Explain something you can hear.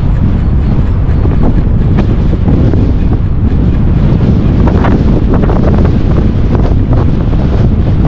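Bicycle tyres rumble and rattle over a bumpy brick path.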